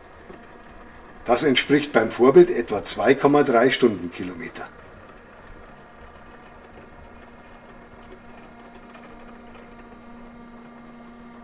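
A small electric motor hums softly as a model locomotive rolls slowly along the track.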